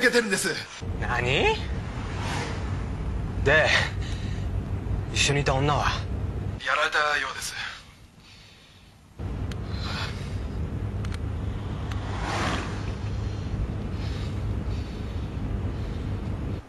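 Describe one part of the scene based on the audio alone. A young man speaks tensely into a phone.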